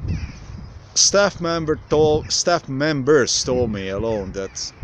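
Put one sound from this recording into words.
A man speaks close to the microphone, calmly and plainly.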